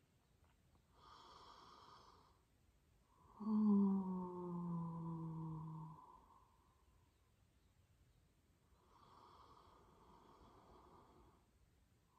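A woman breathes in deeply through her nose, close by.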